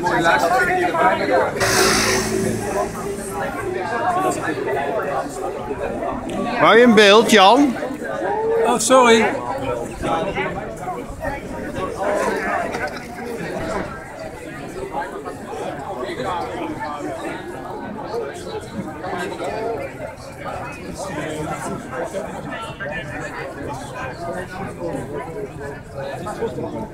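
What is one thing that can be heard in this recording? A crowd murmurs and chatters outdoors on a street.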